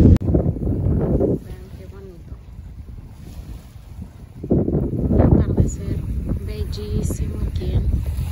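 Small waves lap gently on the shore.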